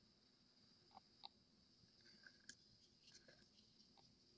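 A plastic stick stirs and taps inside a cup.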